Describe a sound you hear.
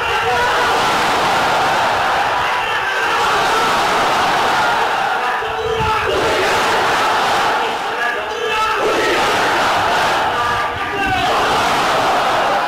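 A man shouts loudly over a crowd.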